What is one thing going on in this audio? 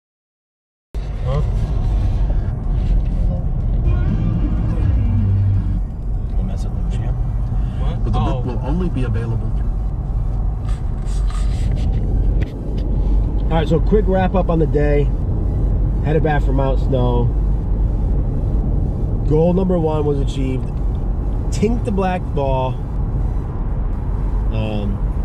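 A car engine hums steadily with road noise.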